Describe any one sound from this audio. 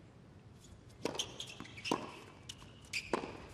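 Tennis balls are struck hard with rackets in a rally.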